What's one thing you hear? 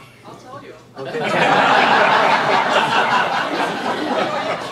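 An audience laughs loudly together.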